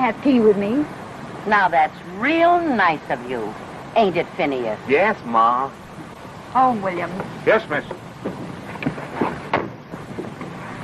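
A woman talks with animation, heard through an old, hissy film soundtrack.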